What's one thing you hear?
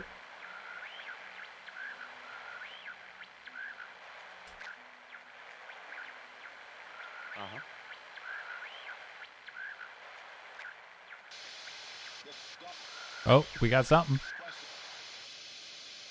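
A radio hisses and crackles with static.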